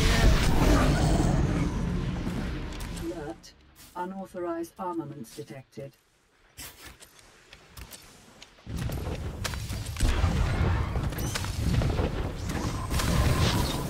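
Blaster shots and combat effects crackle in a fight.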